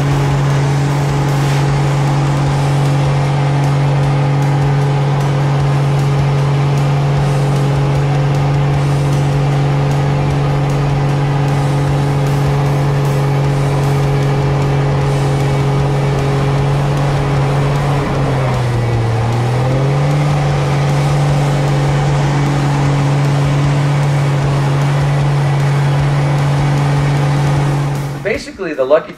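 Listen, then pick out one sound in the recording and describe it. A propeller engine drones loudly and steadily, dipping briefly in pitch during a maneuver.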